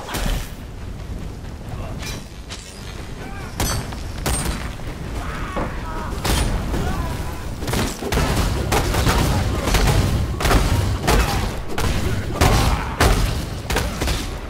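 Fire spells crackle and burst in rapid bursts.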